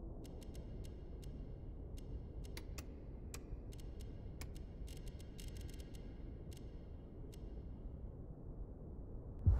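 Menu clicks tick quickly and sharply.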